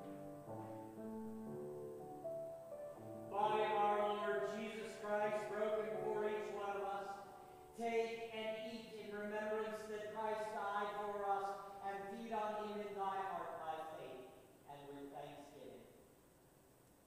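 A middle-aged man sings a slow chant through a microphone in an echoing hall.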